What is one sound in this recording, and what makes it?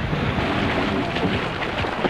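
Splashing water churns as a figure thrashes in a river.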